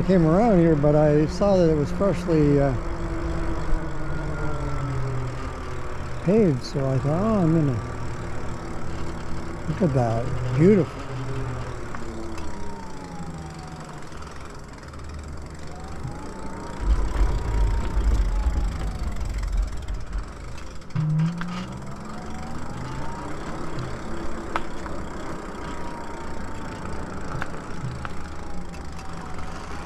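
An electric motor whines, rising and falling in pitch as it speeds up and slows down.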